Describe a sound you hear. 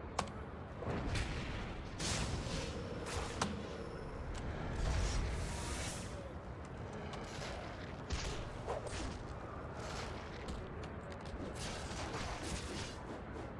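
Fighting sound effects whoosh, crackle and thud in bursts.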